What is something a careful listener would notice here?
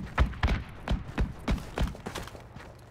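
A rifle fires a quick series of loud shots close by.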